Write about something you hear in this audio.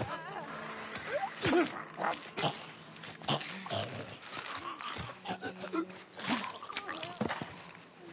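A knife stabs into flesh with wet thuds.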